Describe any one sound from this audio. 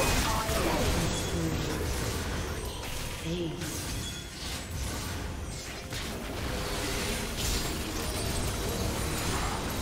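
Magic spell effects whoosh and burst in a video game battle.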